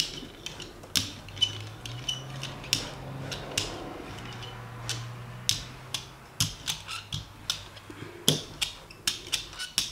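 A rubber roller rolls back and forth over a smooth surface, clicking softly.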